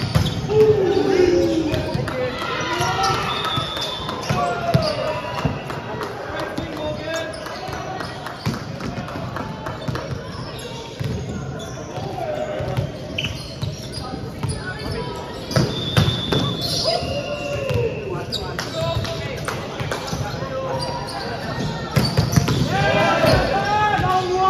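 Young men and women talk and shout across a large echoing gym.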